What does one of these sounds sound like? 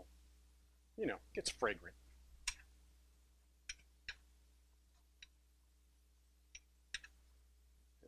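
A metal spatula scrapes and taps on a griddle.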